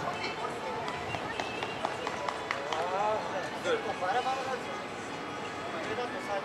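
Shoes squeak on the court.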